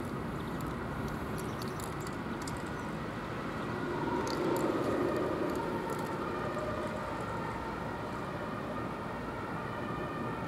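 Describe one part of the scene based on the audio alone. Wind blows steadily across an open outdoor space.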